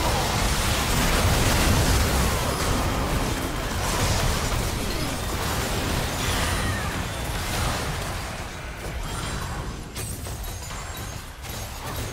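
Spell effects whoosh and crackle during a game fight.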